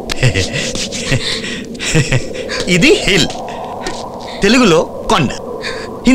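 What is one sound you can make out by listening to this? A man laughs loudly and talks with animation.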